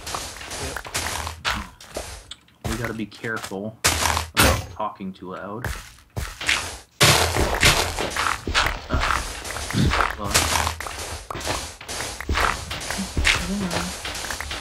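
Stone blocks crunch and crumble under the repeated strikes of a pickaxe.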